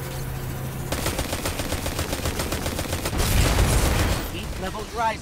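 A rapid-fire gun shoots in quick, steady bursts.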